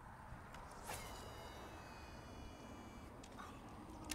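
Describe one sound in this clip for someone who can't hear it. A fishing reel whirs as line spools out.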